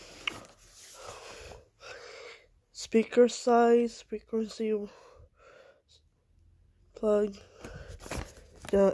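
Hands handle a cardboard box with soft rustling.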